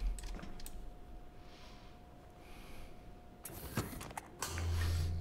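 A metal canister slides and clicks into a machine.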